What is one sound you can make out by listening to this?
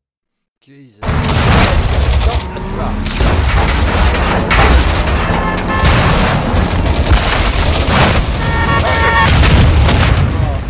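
A truck engine roars as it drives.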